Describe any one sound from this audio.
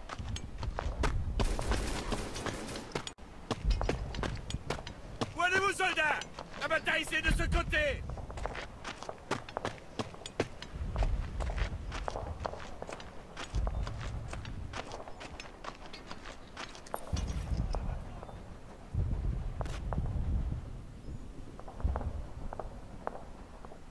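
Footsteps crunch steadily over gravel and dirt.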